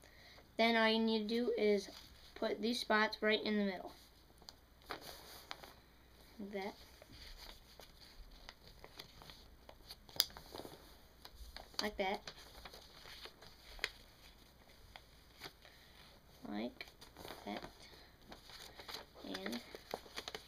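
A boy speaks calmly, close by.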